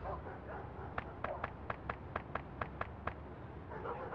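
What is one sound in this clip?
Footsteps tap at an even pace on pavement.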